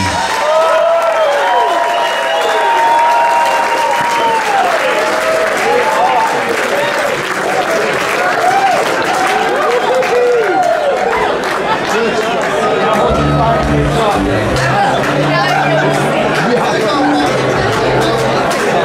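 A rock band plays loudly, heard live in a club.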